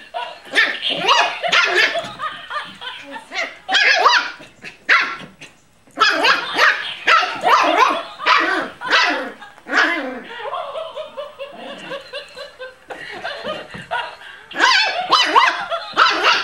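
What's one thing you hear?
A small puppy growls and yips playfully while tugging a toy.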